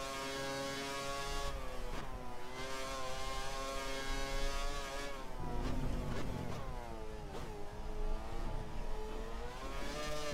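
A racing car engine roars at high revs, its pitch dropping and jumping with each gear change.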